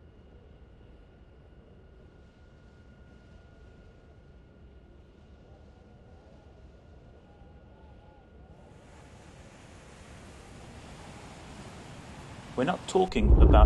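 Calm sea water laps gently.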